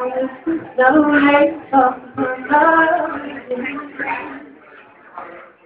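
A man sings through a microphone.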